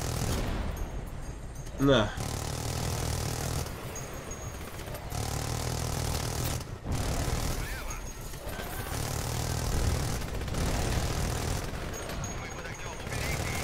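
A minigun fires in rapid bursts.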